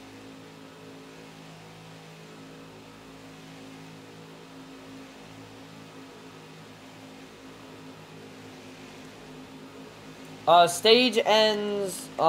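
Racing car engines drone steadily.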